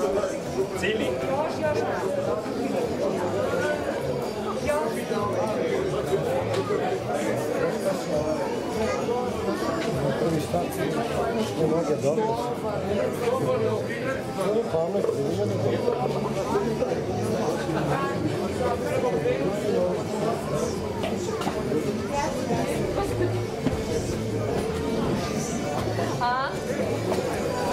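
A crowd of people chatters close by outdoors.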